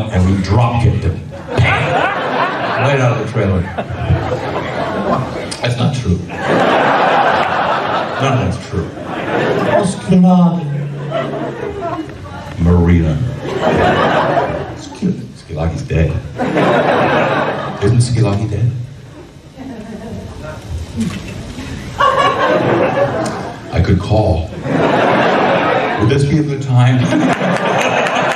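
A middle-aged man speaks with animation through a microphone and loudspeakers.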